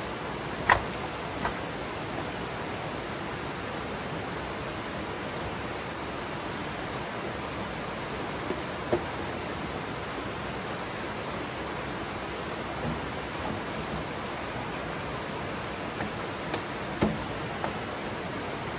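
Bamboo poles knock against each other and against rocks.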